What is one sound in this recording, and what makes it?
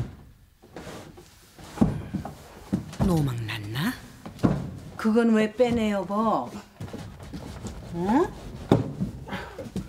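A wooden drawer slides and knocks.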